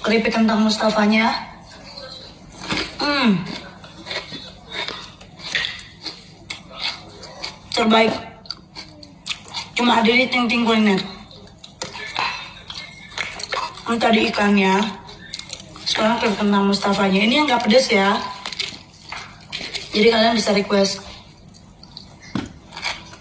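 A young woman crunches a snack while eating.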